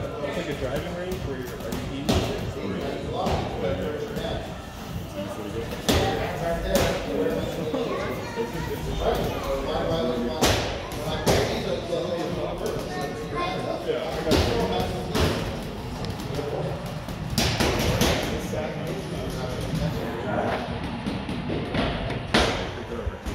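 Children punch heavy bags with dull thuds and slaps.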